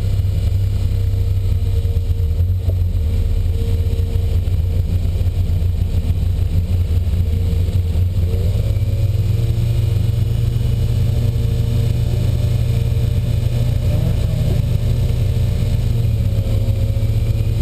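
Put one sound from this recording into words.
A car engine idles with a low, steady hum inside the car.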